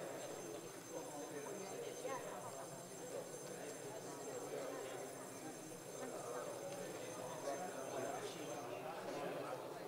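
Many men and women talk over one another in a large echoing hall.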